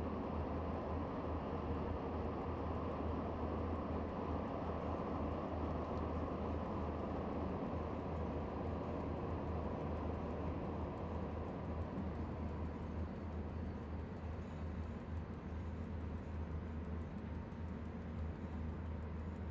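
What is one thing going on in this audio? Train wheels roll and clatter over rails.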